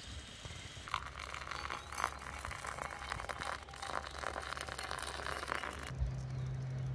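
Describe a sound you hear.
Water pours and splashes into a coffee filter.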